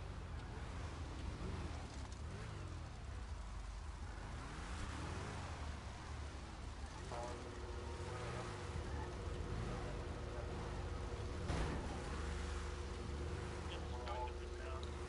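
Many race car engines roar and whine as cars speed past close by.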